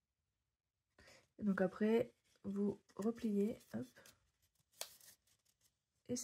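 Paper rustles and creases as hands fold it.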